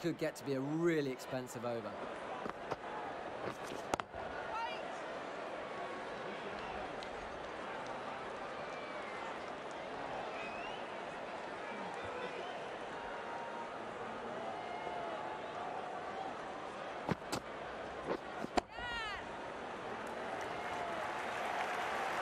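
A crowd murmurs and cheers steadily in a large open stadium.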